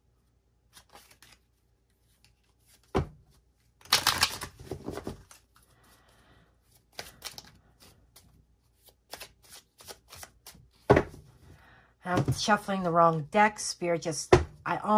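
Playing cards are shuffled with soft, quick riffling and clicking.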